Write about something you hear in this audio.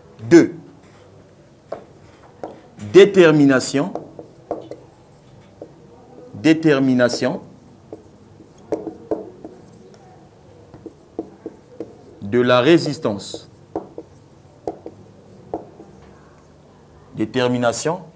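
A man speaks calmly in short phrases, close by in a room.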